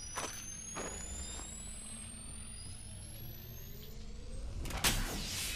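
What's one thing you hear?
A device charges with a steady electric hum and a rising whine.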